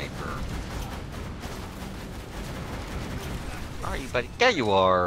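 Rapid gunfire crackles.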